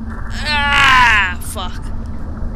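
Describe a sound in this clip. A young woman shrieks loudly.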